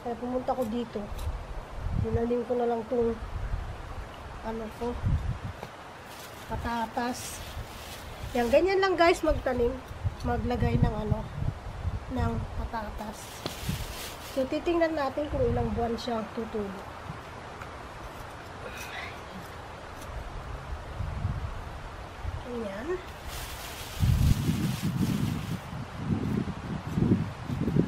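A trowel scrapes and digs into soft soil.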